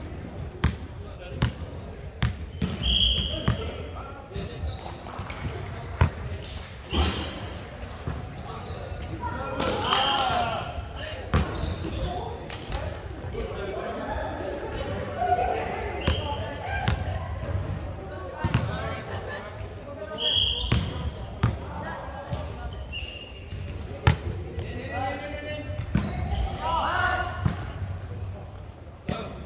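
Young men and women call out and talk during play, echoing in the hall.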